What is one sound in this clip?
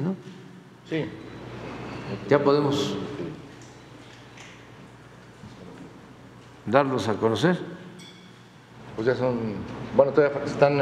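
An elderly man speaks slowly and calmly into a microphone in a large echoing hall.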